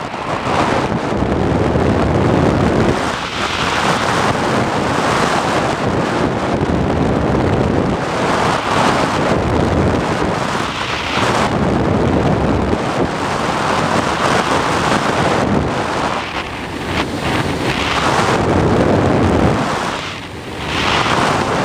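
Wind rushes loudly past a small model glider in flight, rising and falling in gusts.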